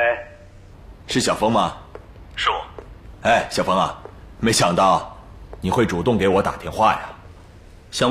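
A middle-aged man speaks warmly into a phone.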